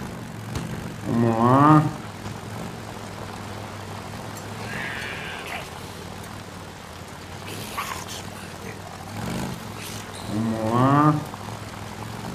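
A motorcycle engine revs up sharply.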